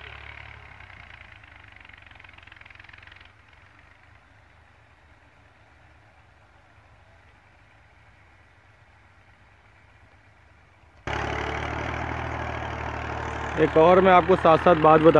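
A tractor engine rumbles steadily at a distance.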